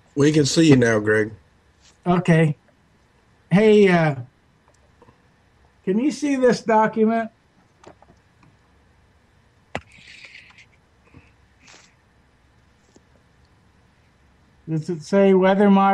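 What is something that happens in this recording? An older man speaks calmly through a webcam microphone, in bursts with pauses.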